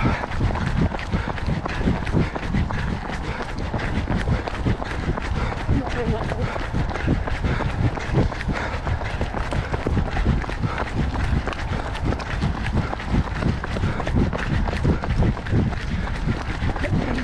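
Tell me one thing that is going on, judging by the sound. Running footsteps thud steadily on a gravel path.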